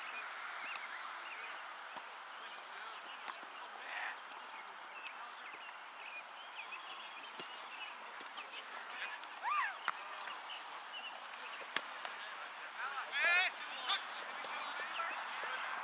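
A soccer ball is kicked with dull thuds.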